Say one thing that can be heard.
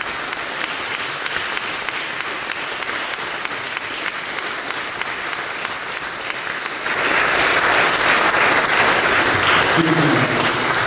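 An audience claps and cheers in an echoing hall.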